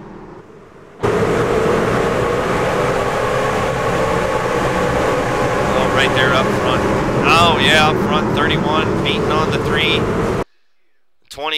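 Racing car engines roar as cars speed around a track.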